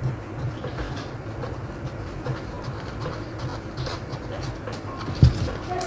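Scissors snip through stiff paper in quick, crisp cuts.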